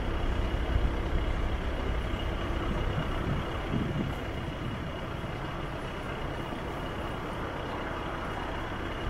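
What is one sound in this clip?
Bicycles roll past on asphalt.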